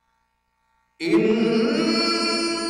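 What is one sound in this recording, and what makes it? A man chants loudly into a microphone, his voice ringing through an echoing hall.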